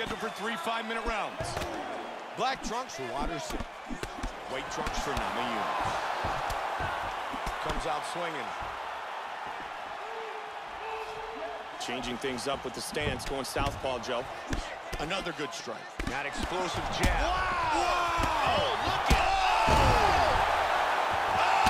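Punches thud against a body.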